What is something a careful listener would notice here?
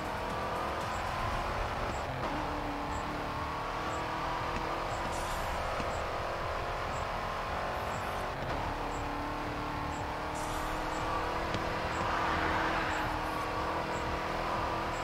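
A racing car engine roars at high speed, shifting up through the gears.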